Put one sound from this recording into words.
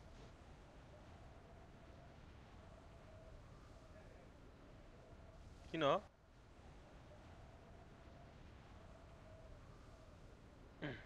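Wind rushes steadily in a game.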